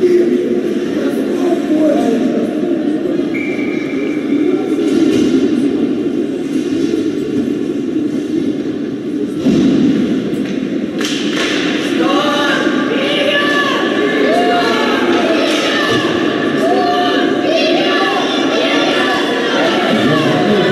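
Ice skates scrape across the ice.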